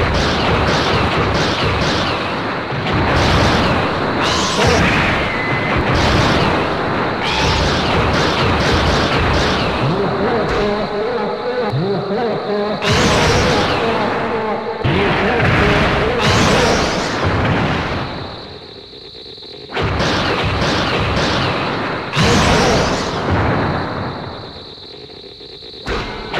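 Video game monsters roar and screech.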